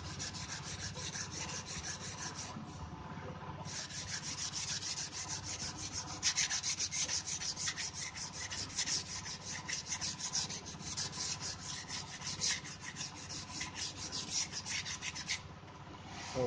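A knife scrapes rapidly along a bamboo strip.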